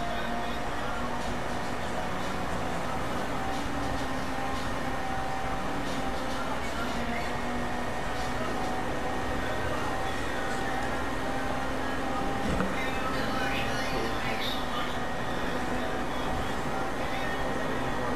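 A car engine hums steadily as it speeds along a road.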